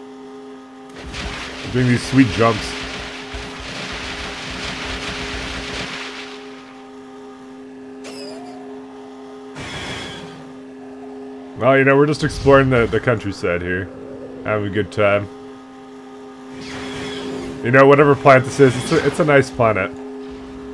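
A hover bike's engine hums steadily.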